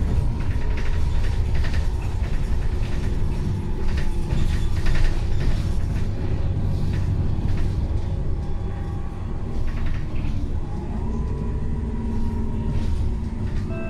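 The bus interior rattles and clatters over bumps.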